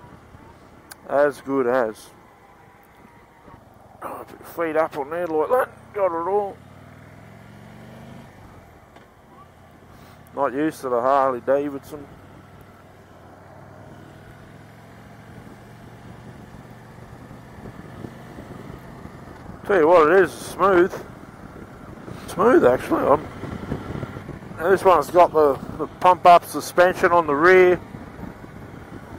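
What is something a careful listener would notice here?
A motorcycle engine rumbles steadily and revs up as it rides.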